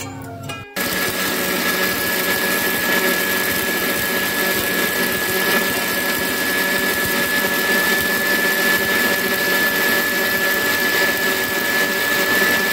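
A blender motor whirs loudly and steadily.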